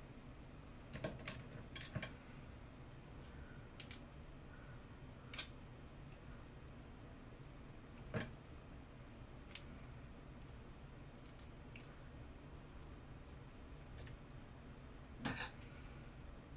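Small objects click and tap sharply in a pair of hands.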